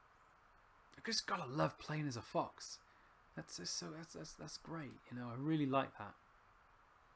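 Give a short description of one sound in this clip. A man talks close into a microphone.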